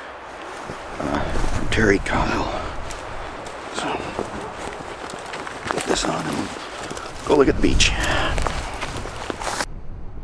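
A flannel shirt rustles as a man pulls it on.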